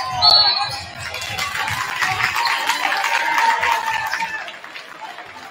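A crowd in a large echoing gym cheers loudly.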